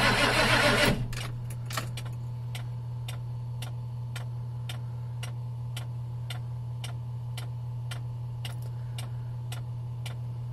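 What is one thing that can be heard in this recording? A diesel engine idles with a low hum and fast, even ticking.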